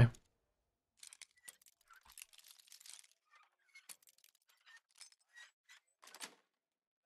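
A lock pick scrapes and clicks faintly in a lock.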